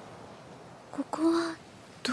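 A young girl asks a short question softly.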